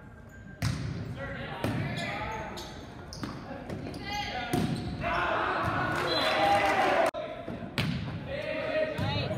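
Young men shout and call out on the court.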